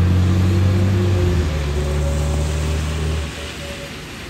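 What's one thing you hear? A bus engine rumbles as it drives away.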